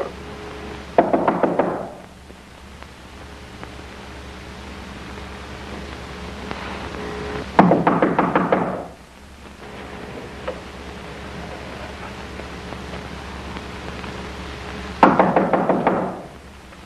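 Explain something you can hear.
A telephone bell rings in short bursts.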